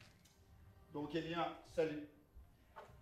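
An elderly man calls out loudly.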